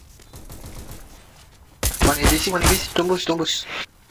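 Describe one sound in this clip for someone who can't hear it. Gunshots crack in quick succession.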